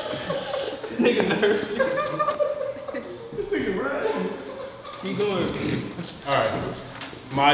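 Several young men laugh and talk loudly in a group.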